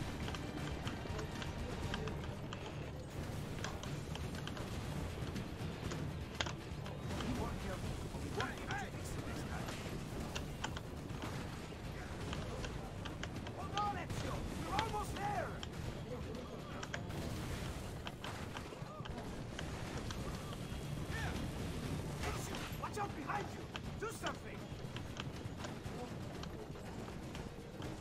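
Horse hooves pound steadily.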